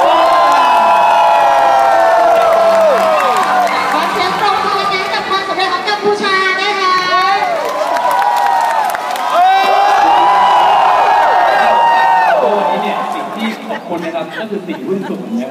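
A large crowd sings and screams along loudly in a big echoing arena.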